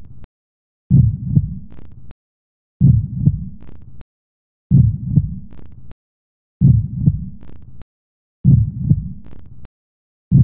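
A heartbeat thumps steadily through an ultrasound monitor.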